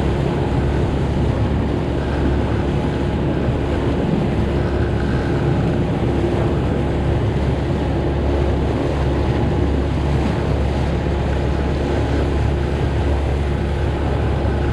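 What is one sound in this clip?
A boat's outboard motor drones steadily at speed.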